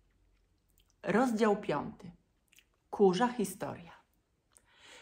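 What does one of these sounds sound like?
A woman speaks calmly and close to a microphone, in short phrases.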